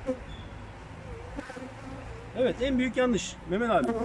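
Bees buzz around a honeycomb frame.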